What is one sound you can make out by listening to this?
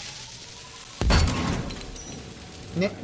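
An explosion bangs loudly and rumbles.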